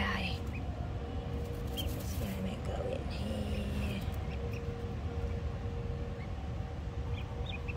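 A duckling peeps softly.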